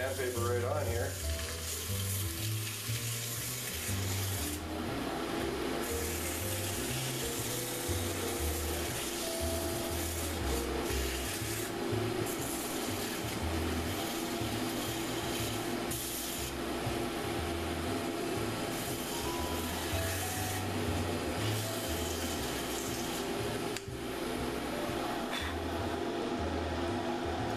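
A small lathe motor hums steadily.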